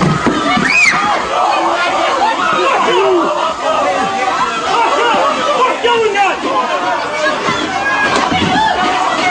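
A crowd of young people shouts and screams in a tense scuffle.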